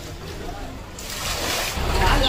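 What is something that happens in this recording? Water pours from a jug and splashes onto wet ground.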